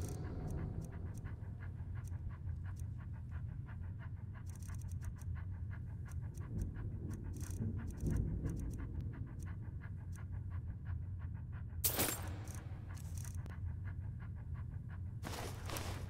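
Soft menu clicks tick rapidly, one after another.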